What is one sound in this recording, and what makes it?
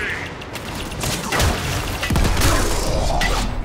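An electric blast crackles and booms.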